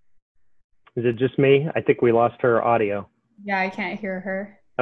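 A second woman talks with animation over an online call.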